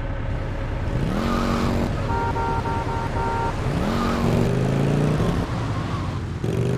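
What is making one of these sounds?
A chopper motorcycle engine revs and pulls away.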